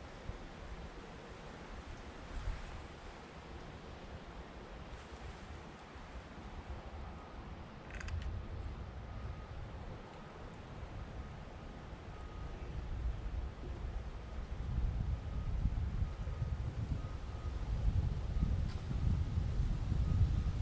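Wind blows outdoors through the trees, growing stronger.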